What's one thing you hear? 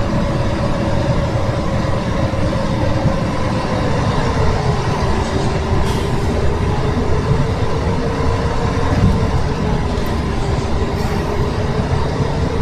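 A bus engine hums steadily with a low rumble.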